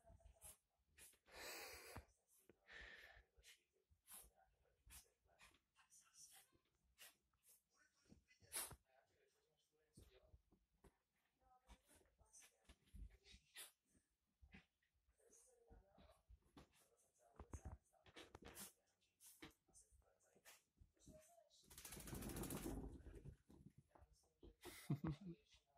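A small dog scrabbles and thumps about on a soft bed.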